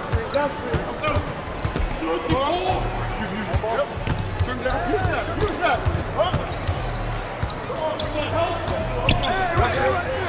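A basketball bounces on a hard floor.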